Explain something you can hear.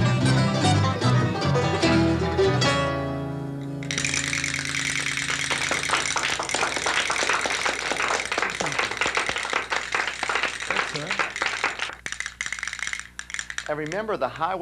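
A band plays lively string music.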